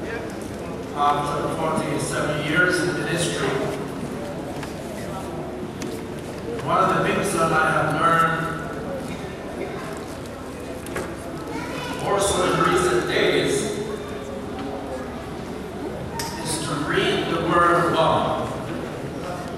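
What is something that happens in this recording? An elderly man speaks slowly and deliberately through a microphone in an echoing hall.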